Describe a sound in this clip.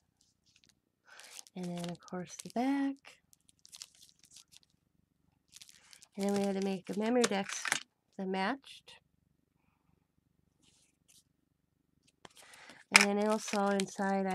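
Stiff paper cards rustle and tap softly as they are handled.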